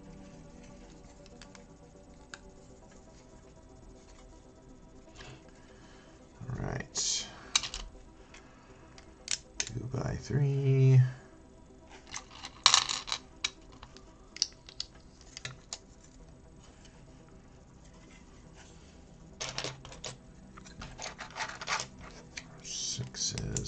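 Plastic toy bricks click and rattle as hands snap them together.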